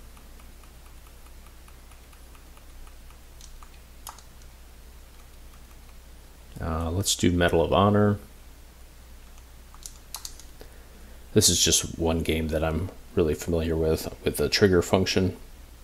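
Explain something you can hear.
Buttons on a game controller click softly.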